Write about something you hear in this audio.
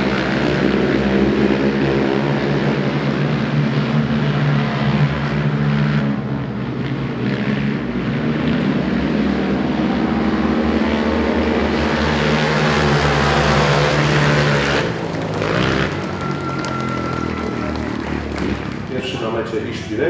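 Several racing engines roar loudly.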